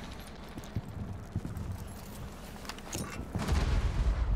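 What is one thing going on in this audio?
A single gunshot fires sharply.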